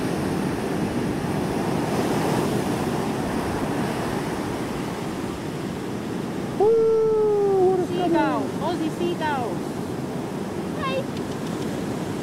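Waves break and wash up a sandy shore.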